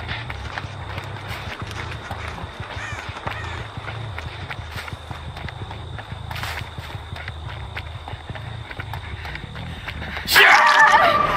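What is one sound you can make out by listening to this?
Footsteps run quickly over dry ground and grass.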